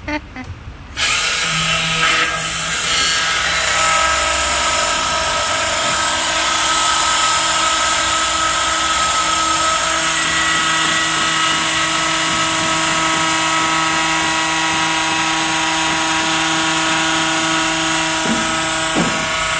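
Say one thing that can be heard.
A drilling machine whines loudly as it bores.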